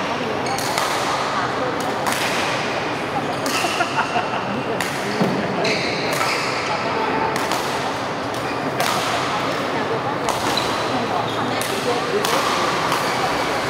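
A shuttlecock is struck back and forth with rackets.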